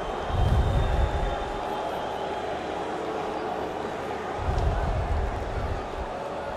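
Young men shout and cheer excitedly close by.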